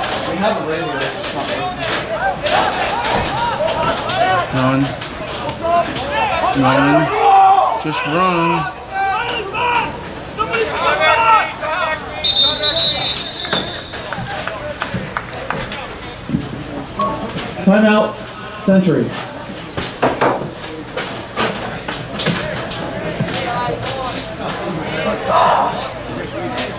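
Lacrosse sticks clack together.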